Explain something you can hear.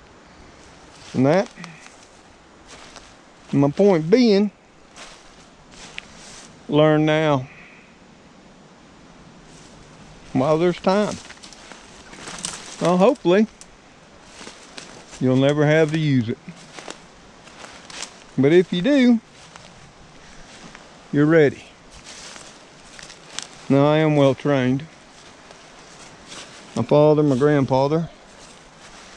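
An older man speaks close by in short, calm bursts with pauses between.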